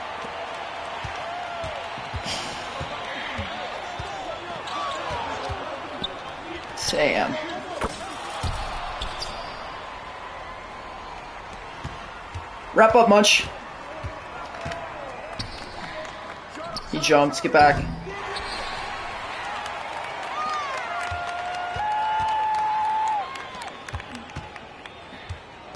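Sneakers squeak on a basketball court.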